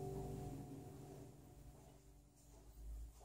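A guitar chord rings out and slowly fades.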